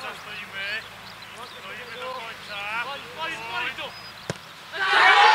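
Young men call out across an open field before the kick.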